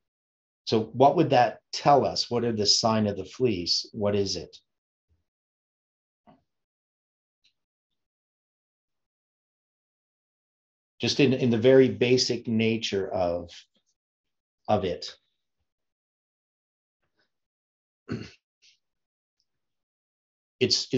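An older man speaks calmly and thoughtfully into a nearby microphone, with long pauses.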